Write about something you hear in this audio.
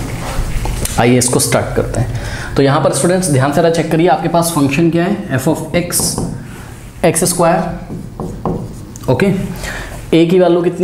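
A young man speaks clearly at a steady pace, close by.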